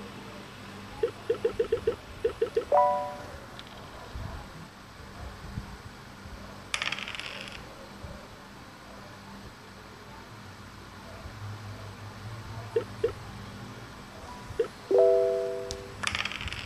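Short electronic beeps and a chime play.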